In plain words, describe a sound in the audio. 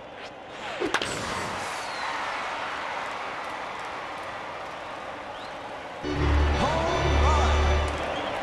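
A video game crowd cheers.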